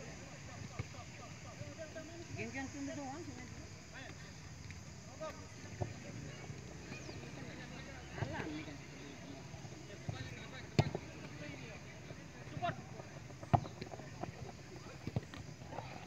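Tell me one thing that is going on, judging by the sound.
Young players shout to each other across an open field, heard from a distance.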